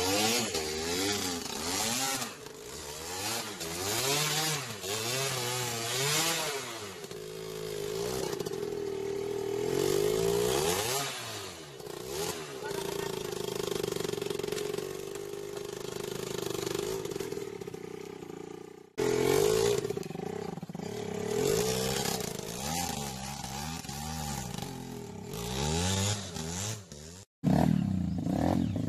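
A motorbike engine revs hard, rising and falling in pitch.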